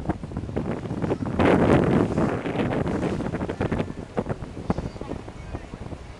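Waves splash against rocks close by.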